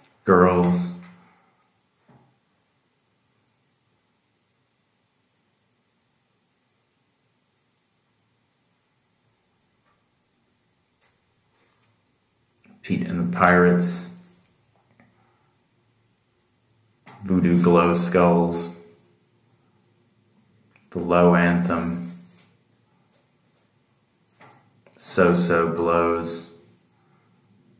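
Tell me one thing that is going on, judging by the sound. A middle-aged man speaks calmly in short bursts, close to a microphone.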